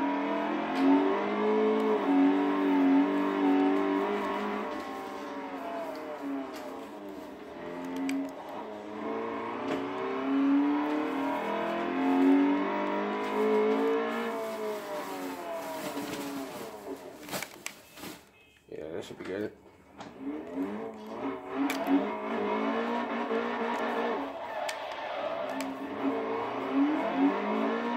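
A car engine revs and whines, rising and falling in pitch as gears shift.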